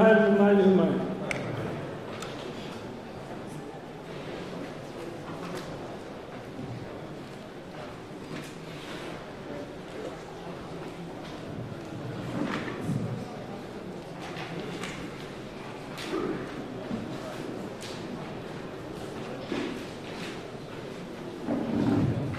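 A crowd of men murmurs and talks in the background.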